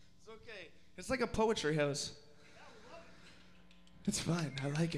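A young man speaks loudly into a microphone over a loudspeaker.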